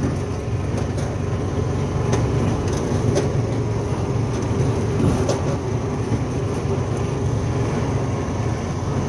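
A lawn tractor engine rumbles steadily up close.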